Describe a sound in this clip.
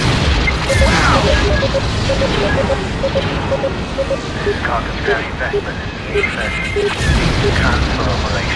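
An electronic beeping pulses rapidly from a cockpit console.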